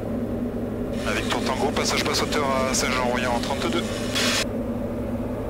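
A man speaks briefly over a headset intercom.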